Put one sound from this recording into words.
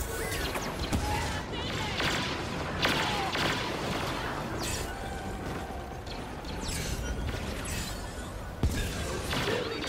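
A jetpack roars in bursts.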